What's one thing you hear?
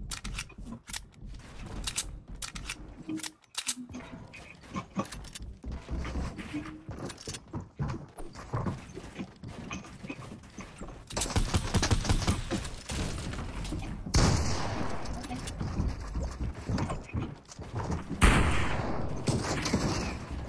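Building pieces in a video game snap and clack into place in quick bursts.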